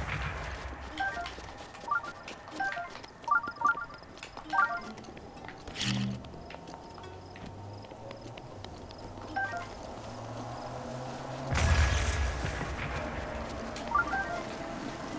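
Short bright chimes ring out as items are picked up.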